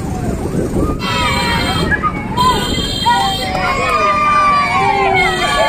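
Women and children cheer and call out outdoors.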